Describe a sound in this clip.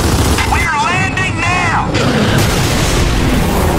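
A helicopter roars loudly overhead.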